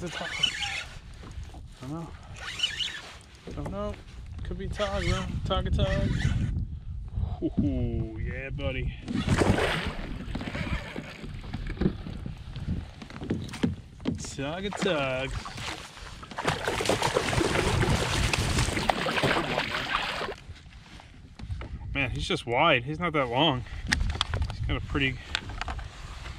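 A man talks with animation close by, outdoors in wind.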